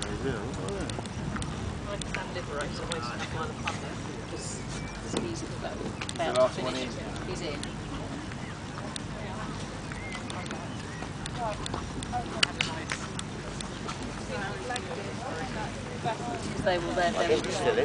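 Horses' hooves thud softly on grass.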